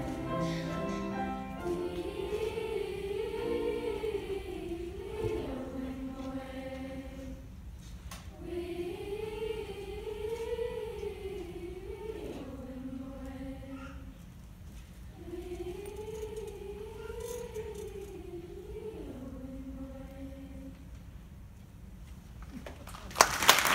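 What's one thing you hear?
A children's choir sings together in a large hall, with a soft, swaying melody.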